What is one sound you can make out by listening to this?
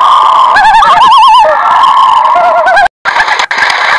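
A loon wails with a wavering, tremolo call.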